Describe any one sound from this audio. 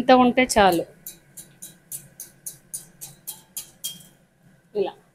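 Hot oil drips from a wire strainer and sizzles softly in a pan.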